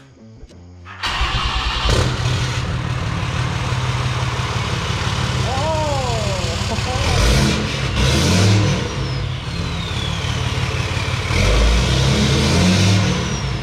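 A truck engine starts and idles with a loud, steady rumble.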